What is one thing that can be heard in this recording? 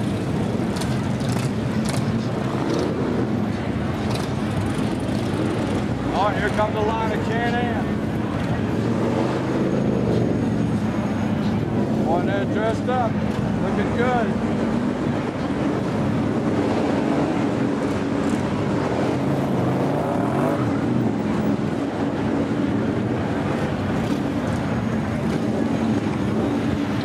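Motorcycle engines rumble and rev nearby.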